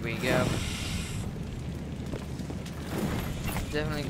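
A furnace fire whooshes and roars.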